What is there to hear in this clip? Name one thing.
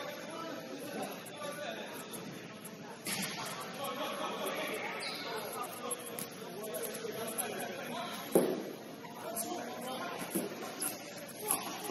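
Sneakers squeak and thud on a hard indoor court, echoing in a large hall.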